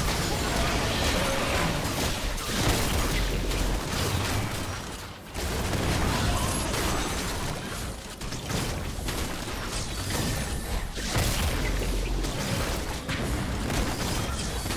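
Game spells and attacks crackle and boom during a fight.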